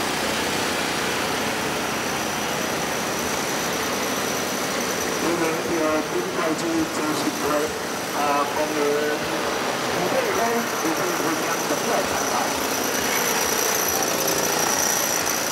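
Motor scooters hum past on a street.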